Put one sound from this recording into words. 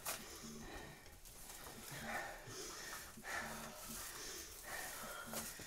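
A sheet of metallic foil crinkles and rustles.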